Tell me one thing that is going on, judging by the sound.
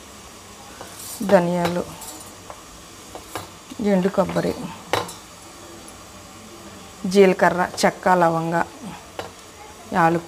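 Dry spices and seeds rattle as they drop into a metal bowl.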